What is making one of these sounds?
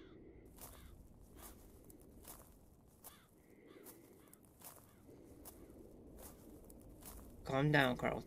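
Footsteps thud steadily at an even pace.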